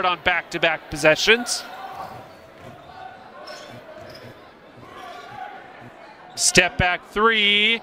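A basketball bounces on the court.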